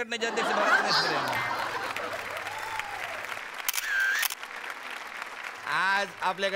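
A studio audience claps.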